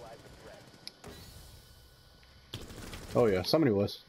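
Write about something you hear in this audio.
A rifle fires several shots.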